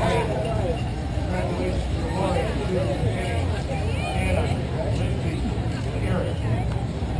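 A crowd of people chatters and cheers outdoors.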